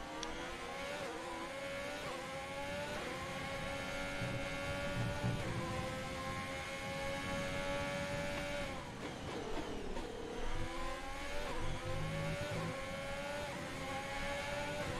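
A racing car engine whines loudly, climbing in pitch through quick gear changes, then drops as the car slows and climbs again.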